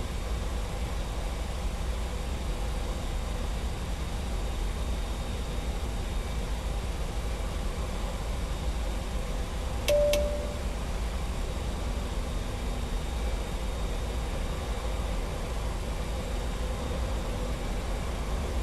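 A jet airliner's engines hum with a steady low rumble.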